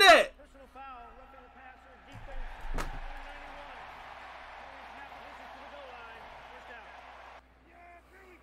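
A man announces a penalty through a stadium loudspeaker.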